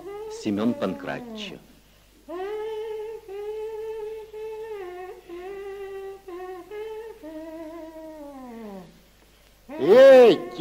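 A tape plays back warbling, gliding tones.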